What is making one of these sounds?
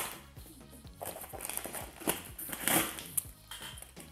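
Scissors slice through packing tape on a cardboard box.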